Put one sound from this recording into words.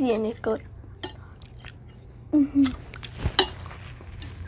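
A fork clinks against a plate.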